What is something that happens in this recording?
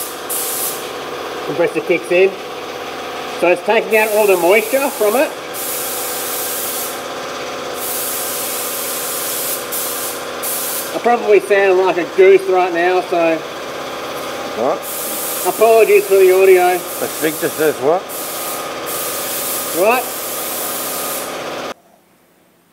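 A spray gun hisses in bursts.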